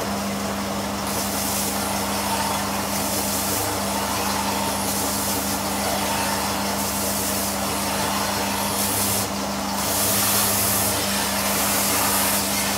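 A belt sander grinds against a board, with a rasping hiss that swells and eases.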